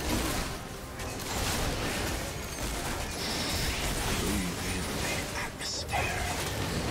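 Game spell effects crackle and clash in a busy fight.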